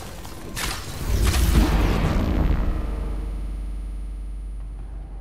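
A deep rumbling blast booms and fades.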